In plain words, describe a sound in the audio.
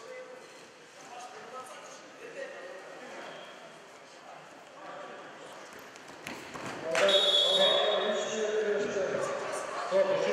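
Voices murmur and chatter in a large echoing hall.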